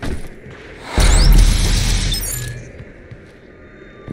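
A bright, swelling magical burst rings out as a glowing orb is picked up.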